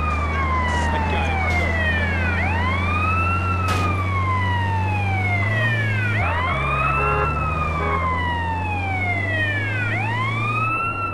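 An engine hums steadily, shifting pitch as the gears change.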